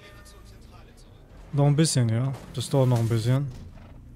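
A car crashes into something with a bang.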